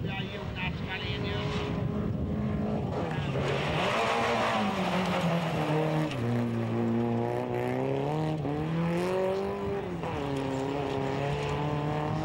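Tyres of a rally car skid on a dirt track.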